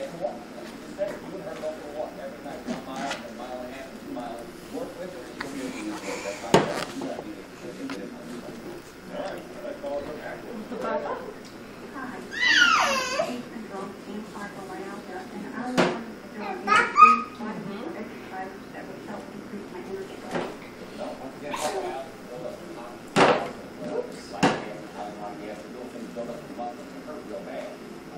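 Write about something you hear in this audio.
A woman talks gently to a baby close by.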